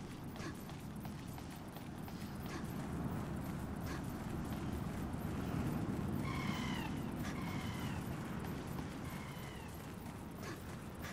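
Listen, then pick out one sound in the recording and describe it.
Footsteps thud on grass at a running pace.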